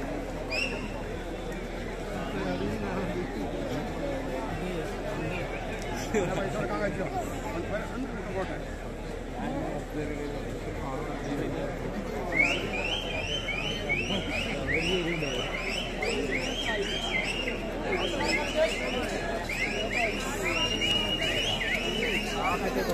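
A large outdoor crowd chatters and murmurs steadily.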